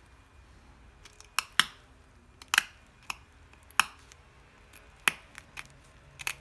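A small knife clicks and scrapes sharply against stiff rubber.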